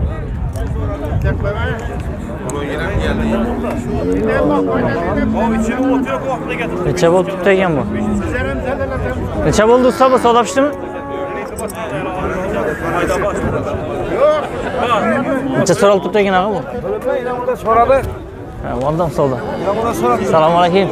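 Several men talk with animation close by, outdoors.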